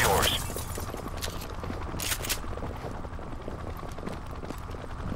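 Footsteps thud on concrete stairs.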